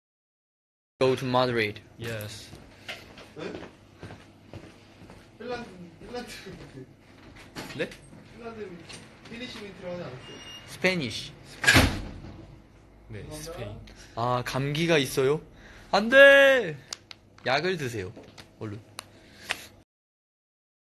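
A young man talks casually, close to a phone microphone.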